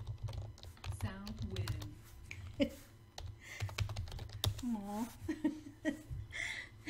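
A woman talks casually and close to a microphone.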